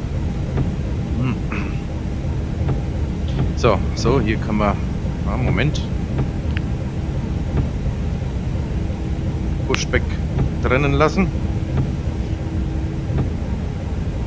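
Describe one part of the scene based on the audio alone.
An aircraft engine hums steadily.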